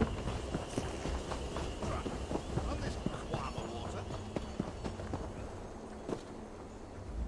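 Footsteps run across soft ground.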